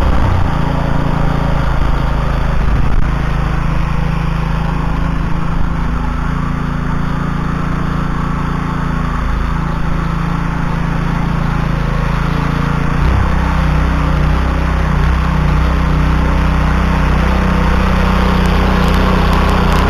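A small petrol engine drones steadily and loudly close by, its pitch shifting as it works.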